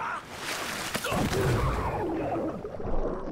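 A body plunges into water with a heavy splash.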